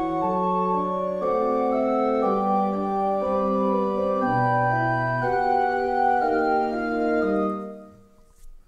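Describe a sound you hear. Electronic keyboard music plays a quick piece.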